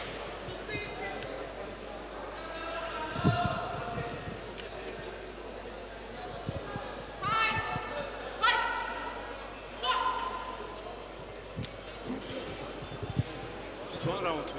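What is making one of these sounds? Men in a crowd shout and cheer loudly in a large echoing hall.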